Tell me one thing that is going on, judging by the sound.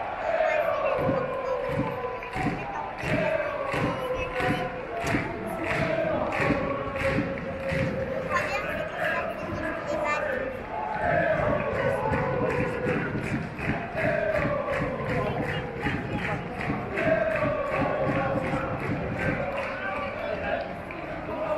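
A crowd of fans claps in a steady, fast rhythm.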